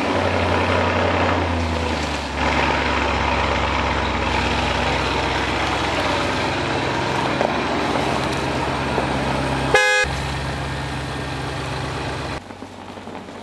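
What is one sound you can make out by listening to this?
A car engine idles with a deep, steady rumble.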